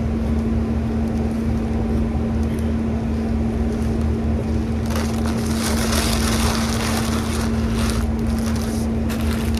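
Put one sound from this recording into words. A woman chews food close by.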